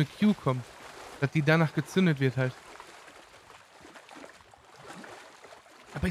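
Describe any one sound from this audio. Water splashes softly as someone wades through a shallow stream.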